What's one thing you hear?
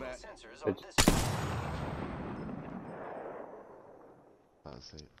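A rifle fires a single loud shot that echoes and slowly fades.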